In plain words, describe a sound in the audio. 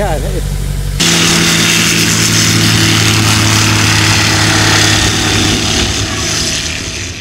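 A small propeller plane's engine roars loudly outdoors.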